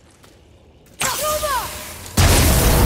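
An axe strikes a hanging metal brazier with a sharp ringing clang.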